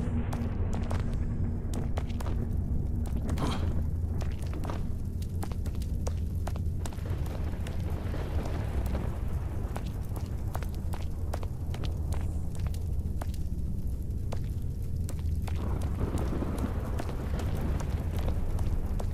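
Bare footsteps patter quickly on stone.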